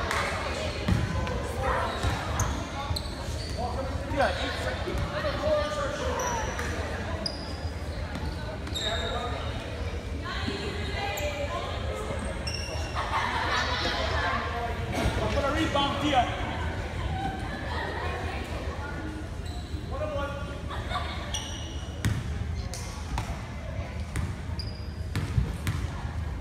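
A crowd of spectators talks and calls out in a large echoing gym.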